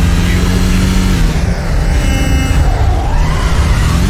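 Tyres screech as a car skids around a corner.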